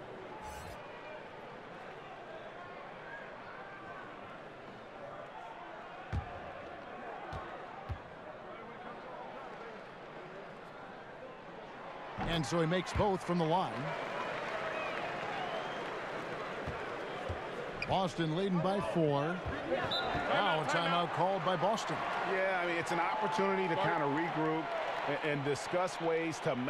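A crowd murmurs in a large arena.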